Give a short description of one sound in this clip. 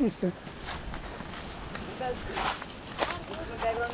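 Dry leaves crunch underfoot as children walk.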